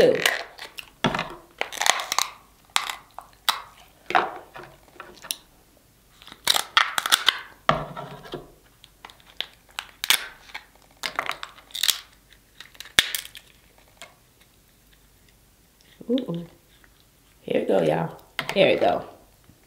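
Crab shells crack and snap as they are broken by hand.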